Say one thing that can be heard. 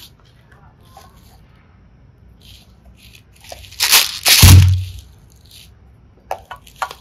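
Plastic containers click and tap as hands handle them.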